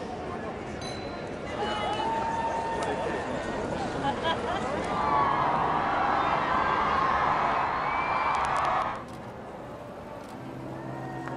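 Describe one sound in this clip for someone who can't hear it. A large crowd cheers and chatters outdoors.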